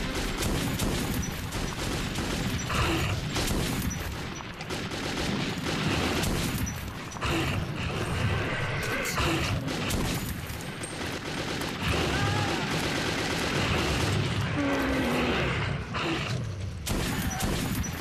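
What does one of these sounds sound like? Creatures growl and snarl close by.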